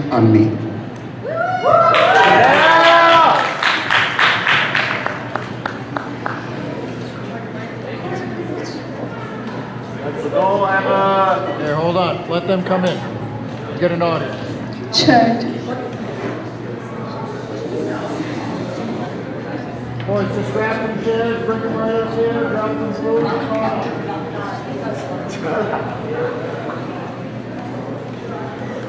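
A band plays live through loudspeakers.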